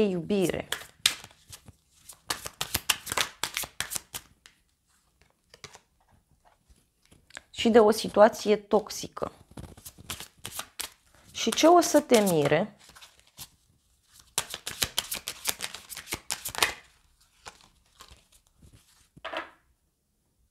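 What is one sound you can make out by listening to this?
Cards shuffle and rustle in a woman's hands.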